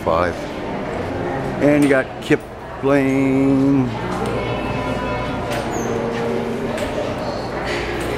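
A crowd murmurs faintly in a large indoor hall.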